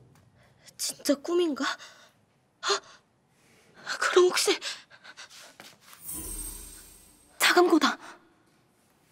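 A young woman speaks close by with tension in her voice.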